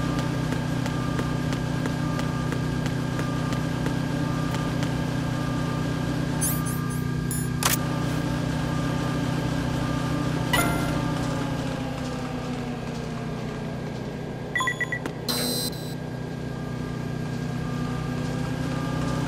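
A conveyor belt hums and rumbles steadily.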